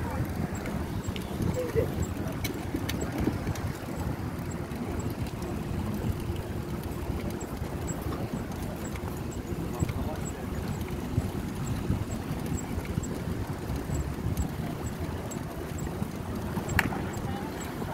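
Bicycle tyres roll over smooth pavement.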